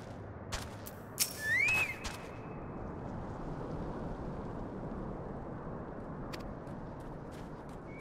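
A campfire crackles softly.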